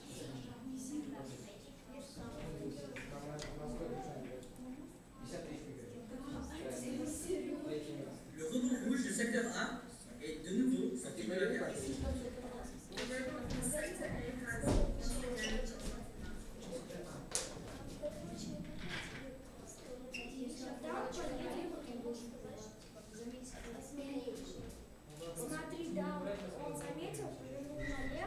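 Children chatter and talk nearby in a busy room.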